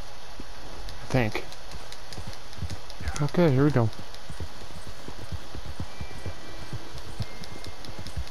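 Hooves thud steadily as a horse trots over soft ground.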